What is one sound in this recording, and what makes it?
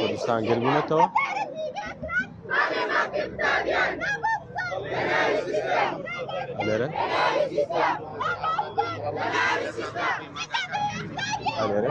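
A crowd of young men and women chants together loudly outdoors.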